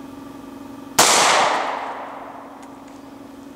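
A gunshot cracks loudly outdoors and echoes away.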